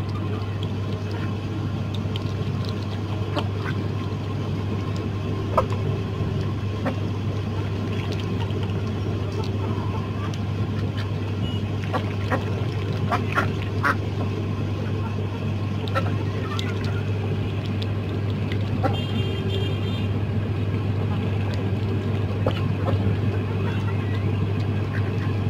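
Ducks quack now and then.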